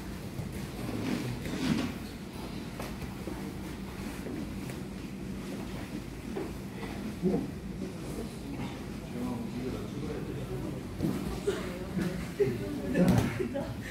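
Bodies thump and shift on a padded mat.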